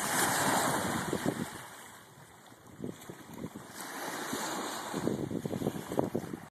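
Small waves lap and splash gently against the shore.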